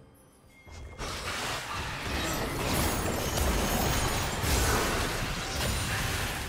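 Magic blasts and weapon hits crackle and boom in a hectic game battle.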